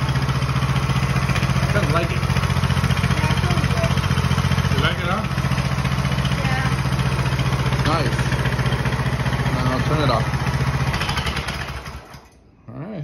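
A small engine idles with a steady rumble, then stops.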